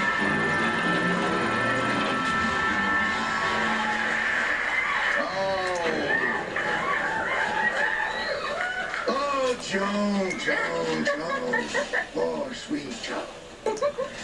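Video game sounds play from a television.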